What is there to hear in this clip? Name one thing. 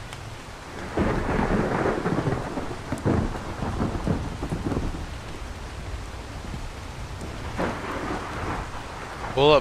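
A young man talks casually close to a microphone.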